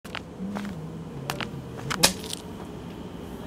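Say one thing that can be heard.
Footsteps tap on a hard pavement, then stop.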